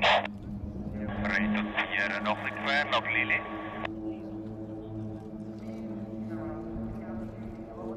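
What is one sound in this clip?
Propeller aircraft engines drone steadily overhead.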